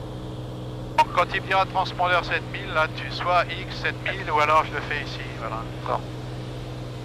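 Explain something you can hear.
A man talks calmly over a headset intercom.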